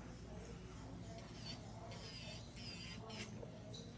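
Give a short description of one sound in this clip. An electric nail file whirs softly.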